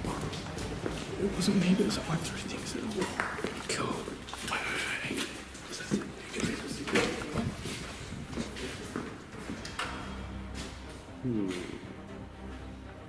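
A young man talks quietly nearby.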